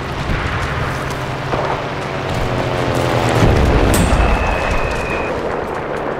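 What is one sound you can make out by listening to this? An explosion booms and rumbles nearby.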